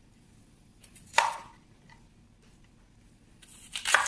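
A knife slices through firm fruit onto a cutting board.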